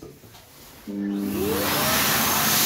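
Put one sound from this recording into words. A hand dryer blows loudly with a roaring whine.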